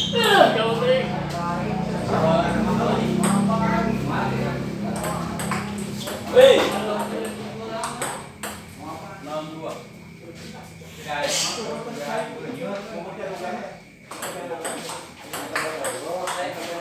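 Men talk and call out nearby.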